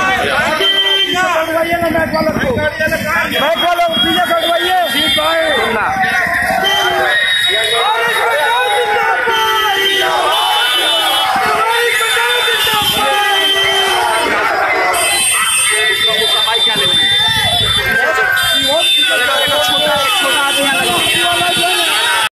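A large crowd of men shouts and cheers loudly, close by, outdoors.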